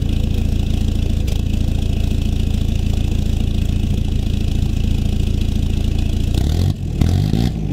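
A truck engine idles with a deep, rumbling exhaust.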